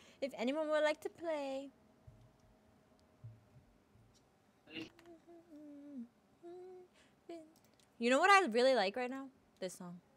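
A young woman talks animatedly and exclaims close to a microphone.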